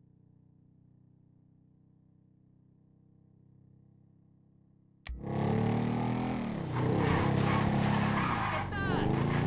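A motorbike engine drones steadily, muffled at first and then suddenly loud and revving.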